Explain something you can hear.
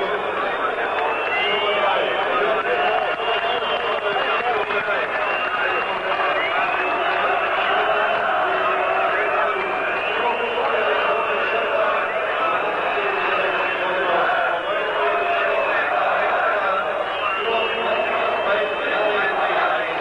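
Whistles shrill from the crowd.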